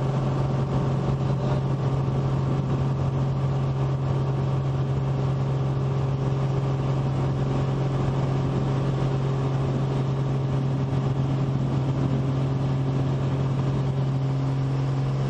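Wheels rumble over a rough runway.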